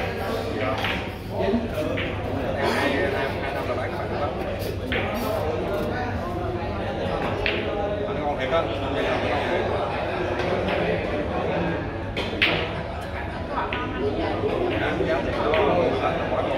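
Men chat nearby in a busy room.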